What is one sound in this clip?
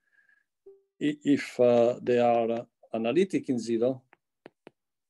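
A middle-aged man speaks calmly through a microphone on an online call.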